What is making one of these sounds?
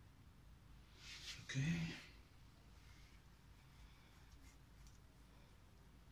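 Latex gloves rustle and snap as they are pulled on.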